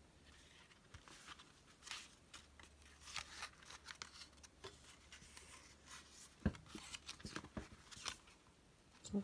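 Paper pages rustle and flip as a small book is leafed through.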